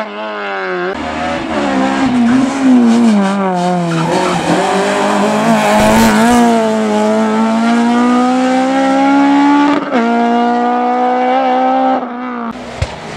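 A second rally car engine screams past at high revs, shifting gears.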